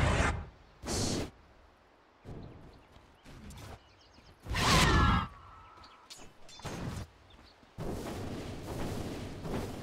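Magic blasts burst and crackle in a video game.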